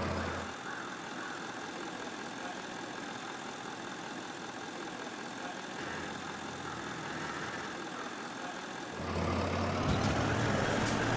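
A truck engine rumbles steadily as it drives slowly over rough ground.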